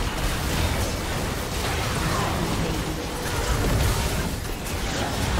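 Game spell effects crackle and burst in a hectic fight.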